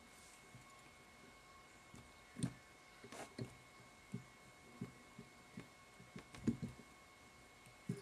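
Soft knocks and bumps of handling sound close by.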